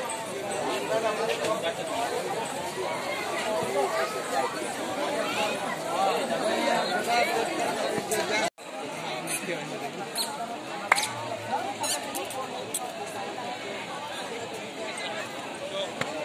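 A crowd murmurs and chatters all around.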